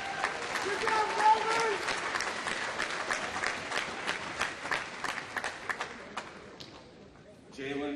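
An audience claps in a large echoing hall.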